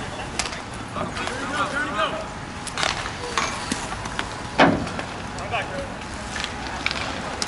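Skate wheels roll and scrape across a hard court.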